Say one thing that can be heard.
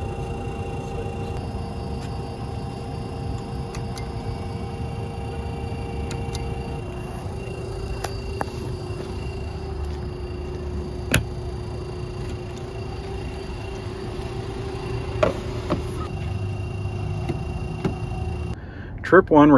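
A charging station hums steadily.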